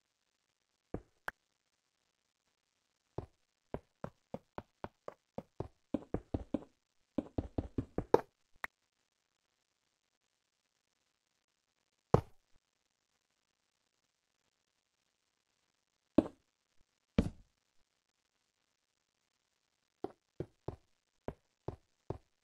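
Blocks are placed and broken in quick, short knocks.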